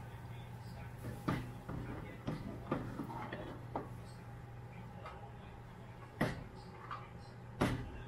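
A metal ladle clinks and scrapes against a metal pan.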